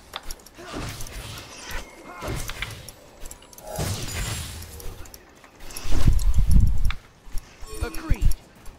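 Video game spell effects whoosh and blast in quick bursts.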